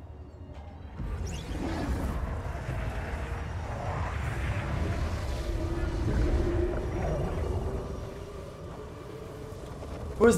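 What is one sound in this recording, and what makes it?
A wind of dust and fire roars loudly.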